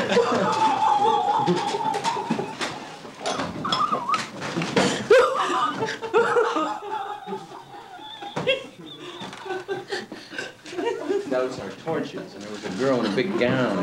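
Several people talk and laugh together close by.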